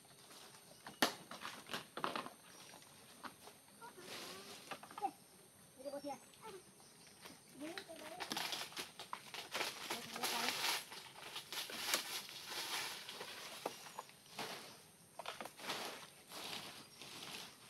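Dry palm fronds rustle and crackle.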